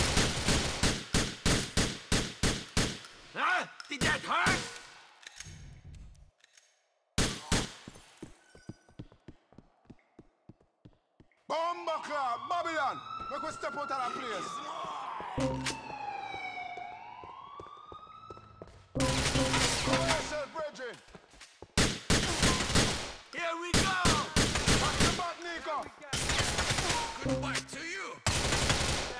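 Rapid gunshots ring out in quick bursts, echoing in a large hall.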